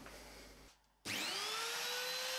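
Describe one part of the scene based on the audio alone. An electric power tool whirs up to a high, steady whine.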